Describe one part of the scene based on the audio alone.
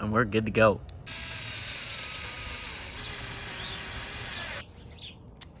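A cordless drill whirs as it drives a screw.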